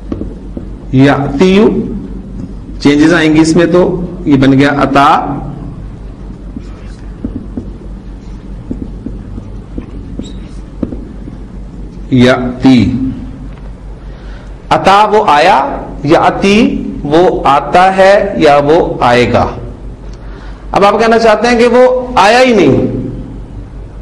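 A man speaks calmly and clearly into a nearby microphone, in short phrases with pauses.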